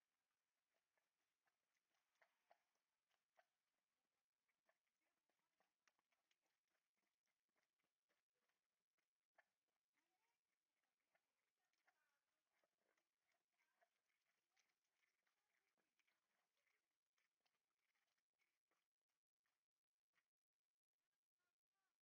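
A dog's paws scrape on rough ground.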